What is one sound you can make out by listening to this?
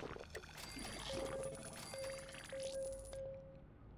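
Short electronic chimes ring as items are collected in a game.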